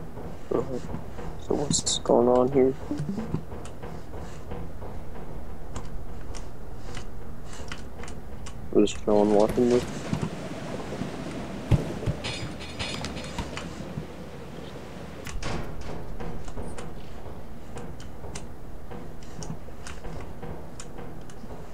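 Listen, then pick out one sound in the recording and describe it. Footsteps clang on a metal grating floor.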